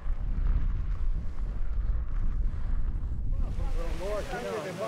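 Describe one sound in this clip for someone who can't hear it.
A bicycle's tyres roll over a gravel track.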